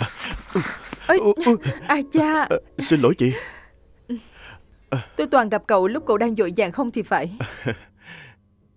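A woman speaks warmly and closely.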